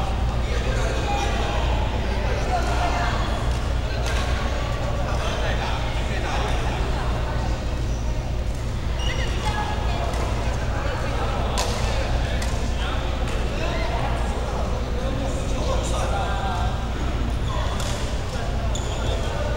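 Several men and women talk and call out across an echoing hall.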